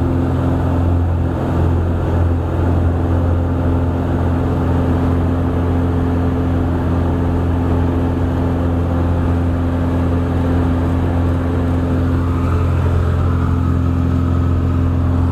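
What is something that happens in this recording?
A small plane's engine drones loudly and steadily from inside the cabin.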